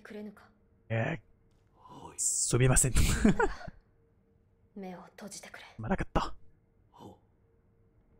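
A man speaks into a close microphone in short phrases.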